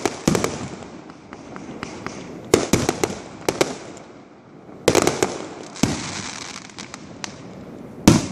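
Firework sparks crackle and pop.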